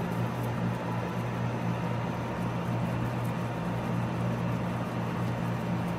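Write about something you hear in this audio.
A guinea pig munches on dry hay with soft crunching.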